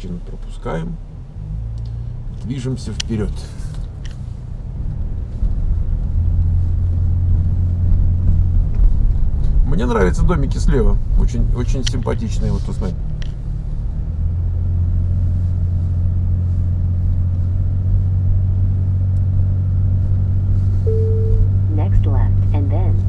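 A car engine hums low and steady, straining as it climbs a steep hill.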